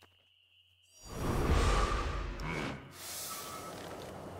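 A sword slides out of its sheath with a loud rush.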